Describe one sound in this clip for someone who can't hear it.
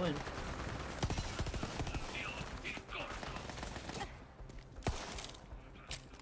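Rapid gunfire bursts out in sharp cracks.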